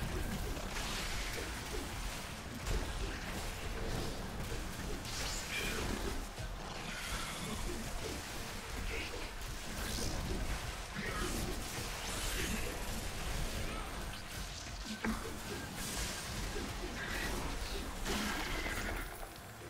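Magic spells crackle and burst in a fight against a giant spider.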